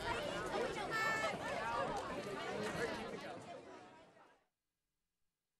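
A large crowd cheers and chatters outdoors, then fades away.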